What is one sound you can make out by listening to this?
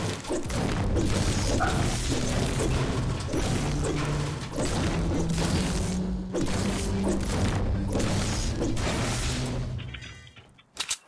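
A pickaxe strikes a metal container again and again with ringing clangs.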